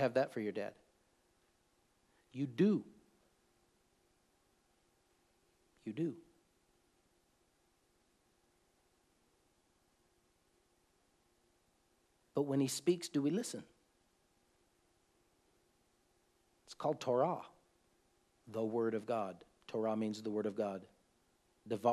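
A middle-aged man speaks calmly and slowly close to a microphone, with long pauses.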